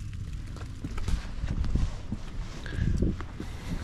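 Footsteps scuff on a hard step outdoors.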